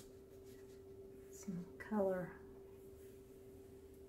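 A damp cloth dabs and wipes wet paint softly.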